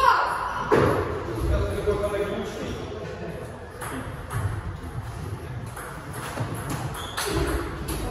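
Table tennis balls click off paddles and bounce on tables in an echoing hall.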